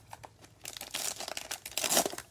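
A foil wrapper crinkles and tears open.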